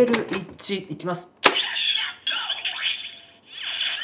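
A plastic card clicks into a toy slot.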